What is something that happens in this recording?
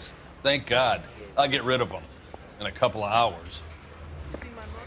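A middle-aged man answers casually.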